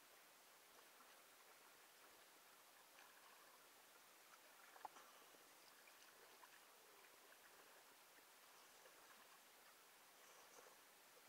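Water splashes softly and ripples close by.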